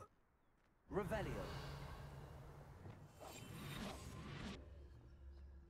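A magic spell whooshes and crackles loudly.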